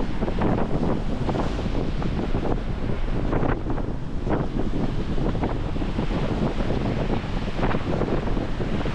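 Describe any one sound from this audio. Small waves wash gently onto the shore.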